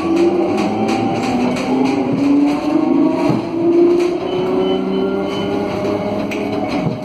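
A tram's electric motor whines, rising steadily in pitch.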